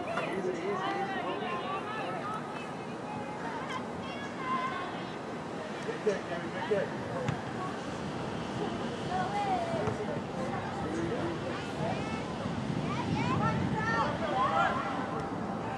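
Young women shout and call to each other across an open field, heard from a distance.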